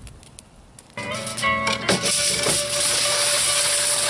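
Aluminium foil crinkles as hands fold it.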